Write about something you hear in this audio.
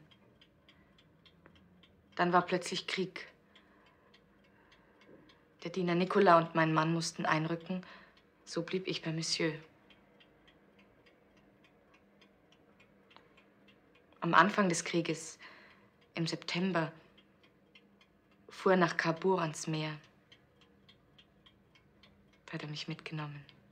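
A clock ticks steadily nearby.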